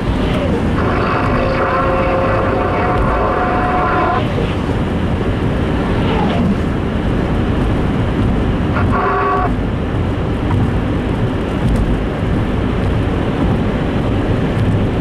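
A car engine rumbles low and steadily.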